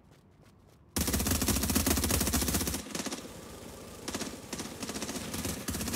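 Gunfire rattles loudly in rapid bursts.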